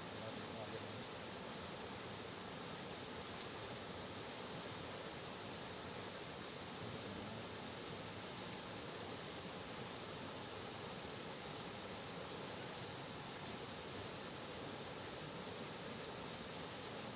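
Wind rustles through tall grass outdoors.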